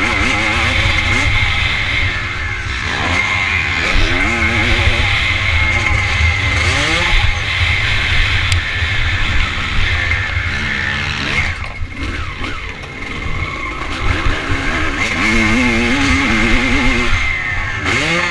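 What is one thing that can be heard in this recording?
A dirt bike engine revs hard, rising and falling as it shifts gears.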